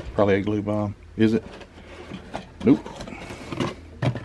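Cardboard box flaps scrape as a box is opened.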